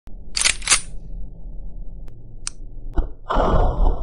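A gun fires in sharp bursts.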